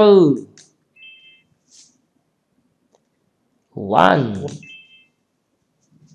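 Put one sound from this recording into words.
A short bright chime twinkles.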